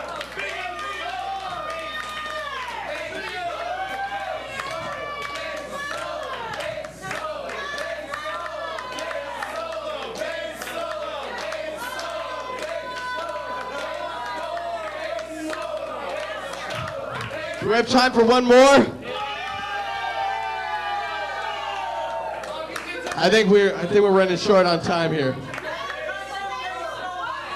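A rock band plays loudly through amplifiers.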